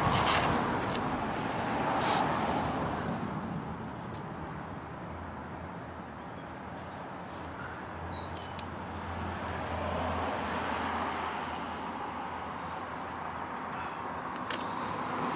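Small metal parts click and clink against a wooden gate.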